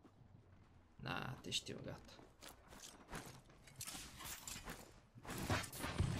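A young man talks casually into a microphone.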